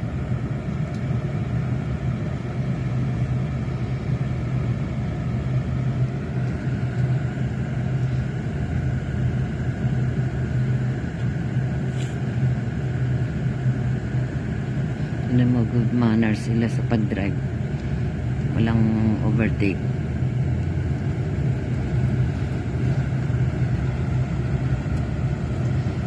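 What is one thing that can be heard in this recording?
Traffic drives past on a busy city street.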